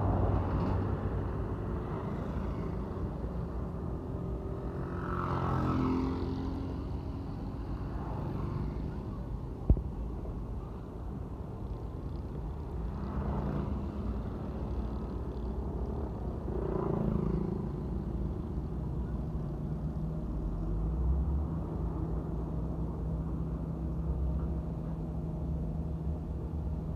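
Trucks rumble along the road.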